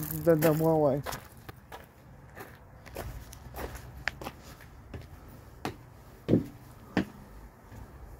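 Footsteps knock on wooden steps.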